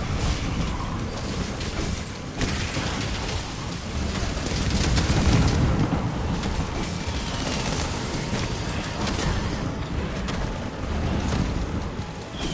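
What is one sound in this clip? A blade slashes and clangs against a hard hide.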